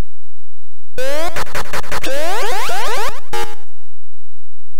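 A longer burst of harsh electronic zapping plays once.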